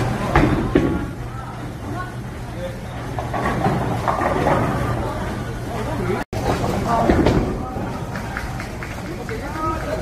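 A bowling ball rumbles down a wooden lane.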